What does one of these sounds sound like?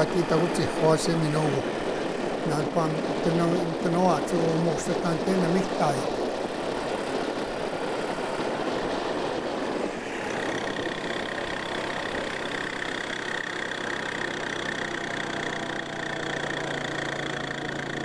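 An all-terrain vehicle engine runs steadily as it rides along.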